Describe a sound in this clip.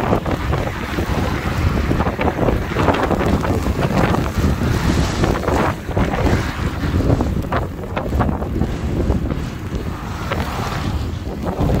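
Strong wind buffets and roars outdoors in gusts.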